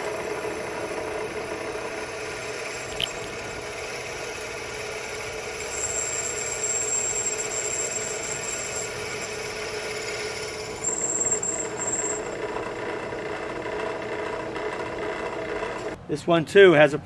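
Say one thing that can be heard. A gas torch hisses and roars steadily.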